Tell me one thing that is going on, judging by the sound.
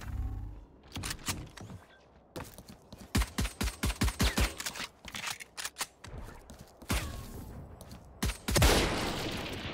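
Rapid gunshots ring out in quick bursts.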